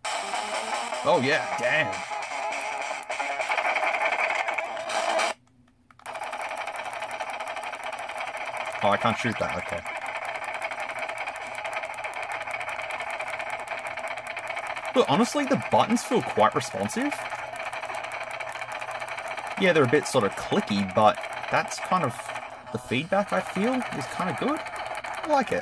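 Electronic game music plays from a small tinny speaker.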